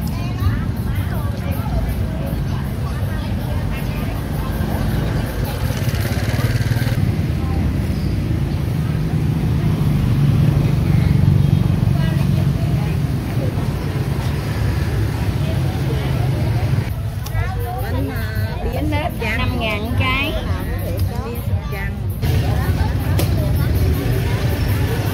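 Men and women chatter around an outdoor market.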